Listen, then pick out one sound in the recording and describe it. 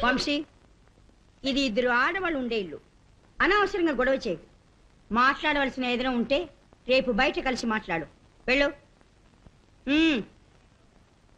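A woman speaks insistently, close by.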